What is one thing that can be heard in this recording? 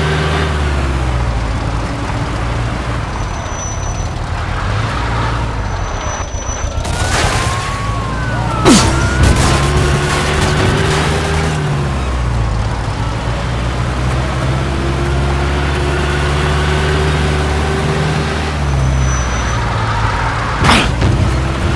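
Tyres crunch and hiss over snowy road.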